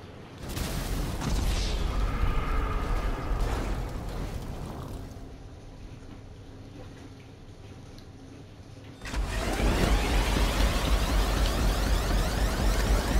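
A race car engine roars as the car drives.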